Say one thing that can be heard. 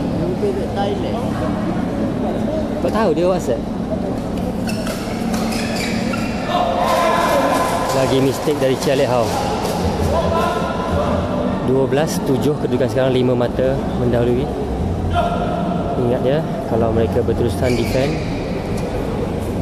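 Young men call out and talk across the court.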